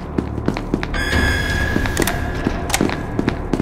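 A card reader gives an electronic beep.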